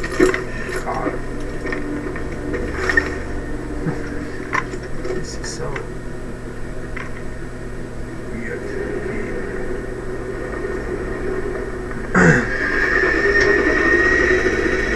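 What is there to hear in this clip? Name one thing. A man talks casually into a microphone.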